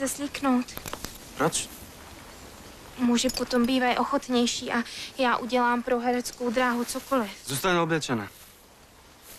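A young woman speaks nearby, calmly and questioningly.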